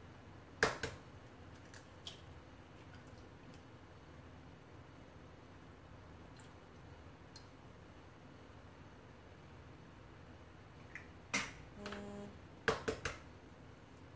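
An eggshell cracks sharply against a metal bowl.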